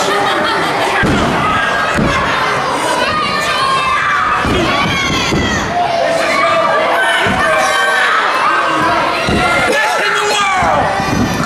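A crowd of men and women shouts and cheers in an echoing hall.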